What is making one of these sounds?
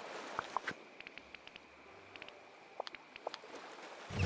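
Soft interface clicks tick in quick succession.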